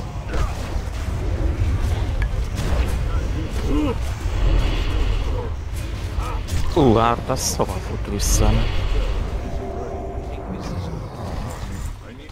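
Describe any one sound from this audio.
Spells crackle and blast as fighters clash with a large monster.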